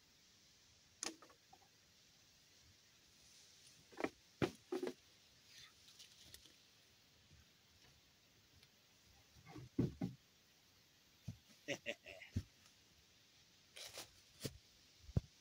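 Wooden boards knock and clatter close by.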